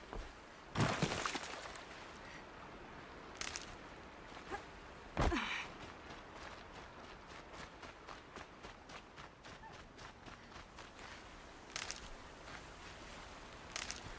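Footsteps run through grass and brush.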